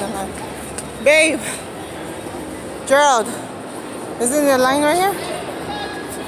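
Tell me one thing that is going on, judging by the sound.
A young child shouts in a high voice nearby.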